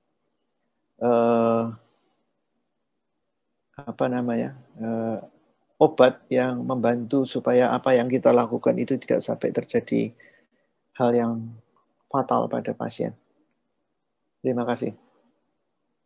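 A middle-aged man speaks calmly through an online call microphone.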